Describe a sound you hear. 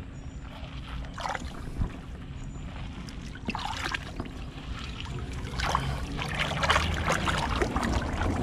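A hand scrapes and rattles pebbles under water.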